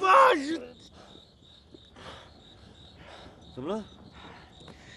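A young man groans in strain.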